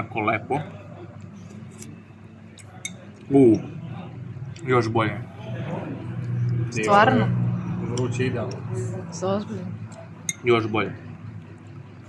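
A man slurps soup noisily from a spoon.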